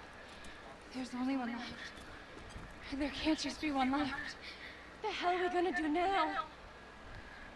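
A young woman speaks with alarm, close by.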